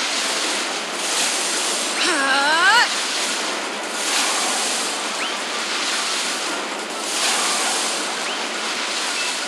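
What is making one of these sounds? Loud magical blasts and explosions roar and crash.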